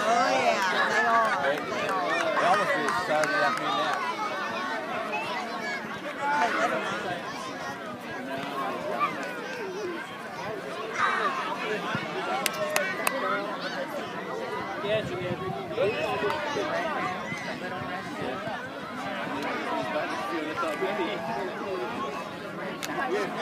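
Adults and children chatter and call out nearby outdoors.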